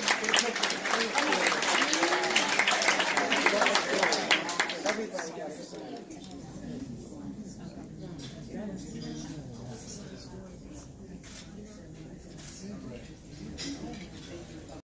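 Adults talk with one another nearby.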